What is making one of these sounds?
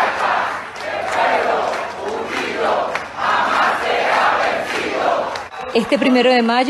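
A large crowd cheers and chants loudly outdoors.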